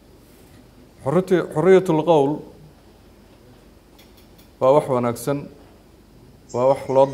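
A middle-aged man speaks calmly into a close microphone, pausing between phrases.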